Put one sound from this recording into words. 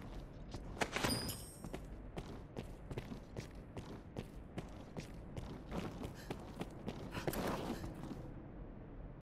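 Footsteps thud on stone in an echoing hall.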